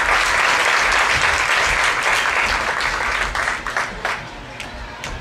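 An audience applauds in a large hall, and the applause fades.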